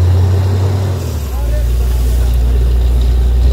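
Muddy water and debris spray out with a rushing blast.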